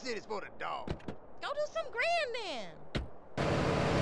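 A car door opens and shuts with a thud.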